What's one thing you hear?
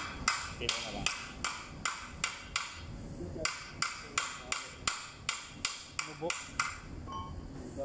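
A hand tool taps sharply and repeatedly on metal.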